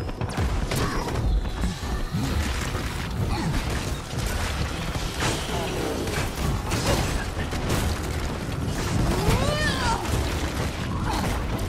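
Energy blasts zap and crackle.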